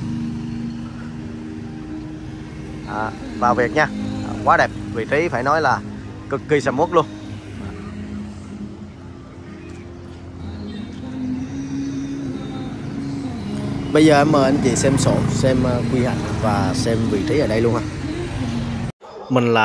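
Motorbike engines hum as they pass close by.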